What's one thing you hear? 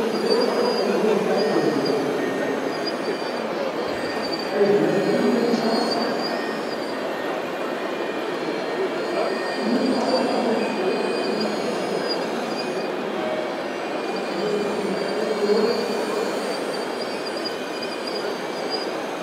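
Soil rustles and scrapes as a digger bucket scoops and dumps it.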